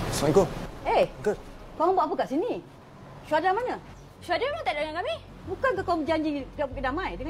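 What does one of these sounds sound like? A woman speaks in distress, pleading.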